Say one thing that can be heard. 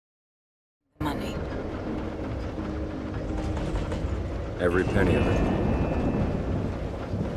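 A train carriage rumbles and rattles softly from inside.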